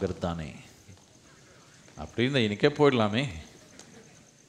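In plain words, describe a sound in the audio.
An elderly man speaks calmly and closely into a microphone, in short phrases.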